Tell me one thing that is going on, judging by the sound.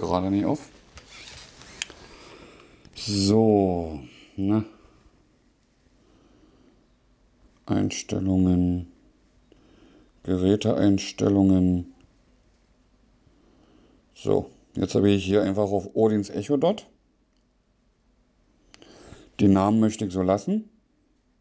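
A woman's synthetic voice speaks calmly through a small loudspeaker.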